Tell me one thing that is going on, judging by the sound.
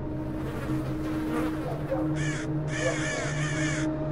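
Crows caw nearby.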